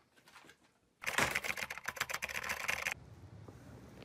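Fingers type rapidly on a laptop keyboard.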